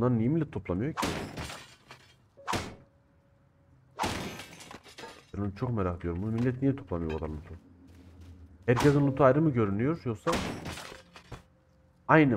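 Metal barrels crash and clatter as they are smashed open.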